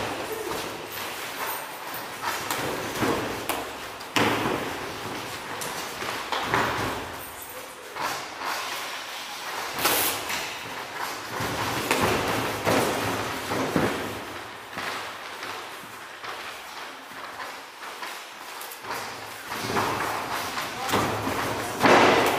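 Feet shuffle and thump on a mat.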